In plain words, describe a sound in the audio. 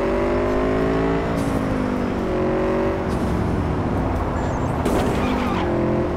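A motorcycle engine hums steadily, its pitch rising and falling as it speeds along.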